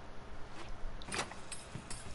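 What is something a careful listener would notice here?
A metal door knob rattles and clicks as it turns.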